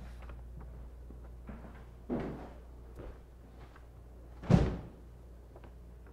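Footsteps tread softly across a hard floor.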